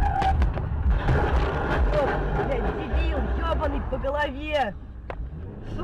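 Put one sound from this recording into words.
An overturned truck scrapes and screeches along asphalt.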